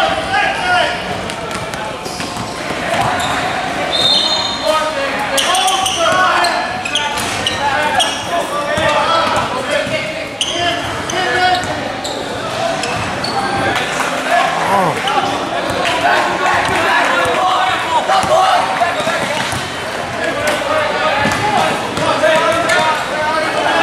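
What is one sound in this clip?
Sneakers squeak on a gym court floor.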